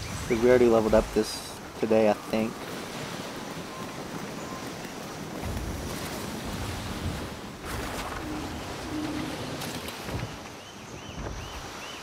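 Water rushes and splashes along the hull of a sailing ship.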